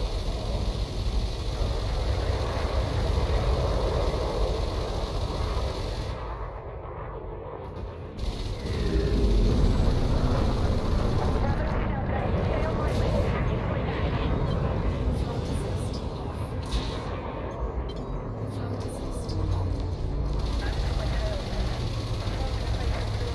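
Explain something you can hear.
A low spaceship engine hums and rumbles steadily.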